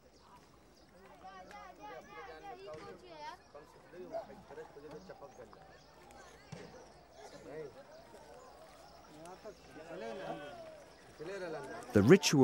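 Men talk quietly outdoors nearby.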